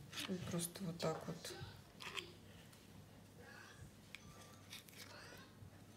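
A knife cuts through soft cheese.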